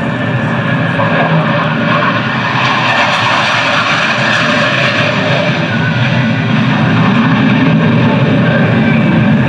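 A jet engine roars steadily overhead.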